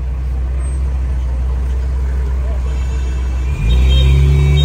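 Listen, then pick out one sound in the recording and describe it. A car engine idles close by and then pulls away.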